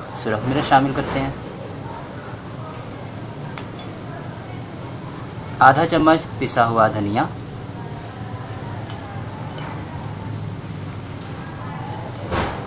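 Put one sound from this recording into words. A metal spoon clinks against a glass jar.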